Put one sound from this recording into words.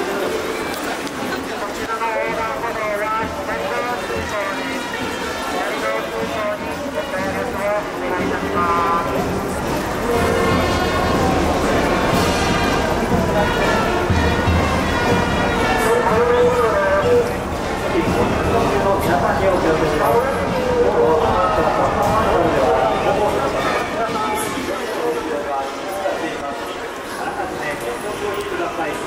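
A large crowd of spectators chatters all around outdoors.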